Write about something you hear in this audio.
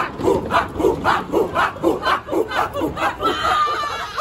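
A group of young people chant loudly in rhythm outdoors.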